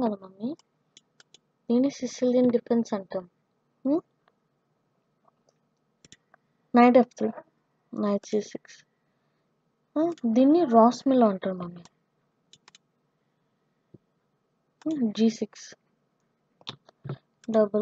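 A boy speaks with animation in bursts close to a microphone.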